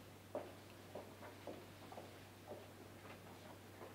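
A woman's footsteps tap across a hard floor.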